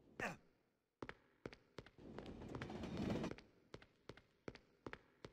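Footsteps clatter on a hard floor and over rails.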